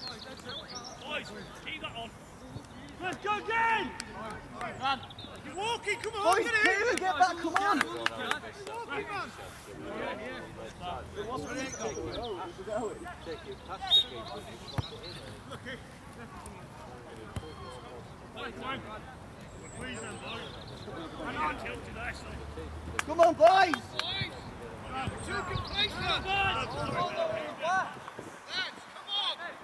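Players shout and call to each other across an open field outdoors.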